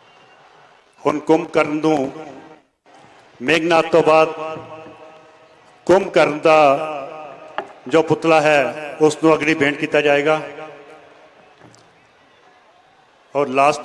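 A man speaks loudly and with animation into a microphone nearby.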